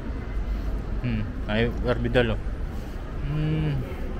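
Adults talk briefly nearby.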